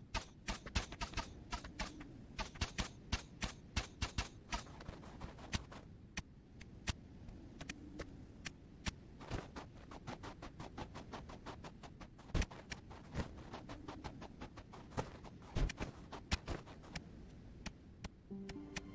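Arrows twang and thud in quick, uneven bursts.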